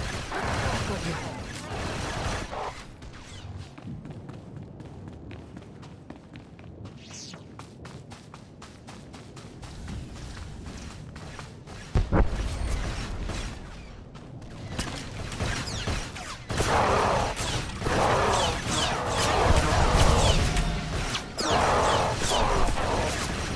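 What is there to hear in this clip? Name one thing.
Blaster shots crack rapidly in a fight.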